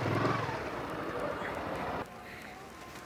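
A motorcycle engine idles close by.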